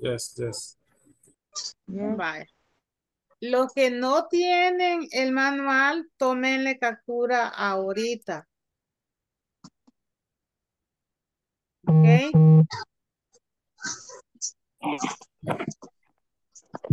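A woman speaks clearly through an online call, as if teaching.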